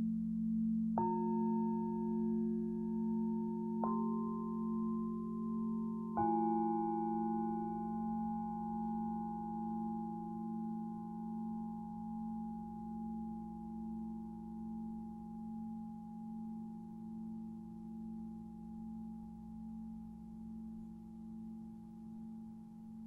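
A mallet strikes singing bowls, which ring out and slowly fade.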